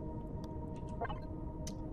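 A craft's engine rumbles steadily.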